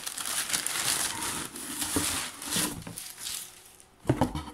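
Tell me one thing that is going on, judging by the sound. Tissue paper rustles and crinkles close by.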